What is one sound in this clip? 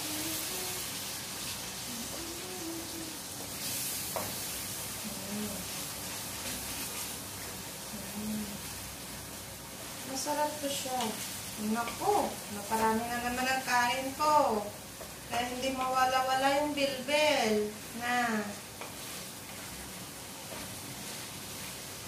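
A spatula scrapes and stirs in a frying pan.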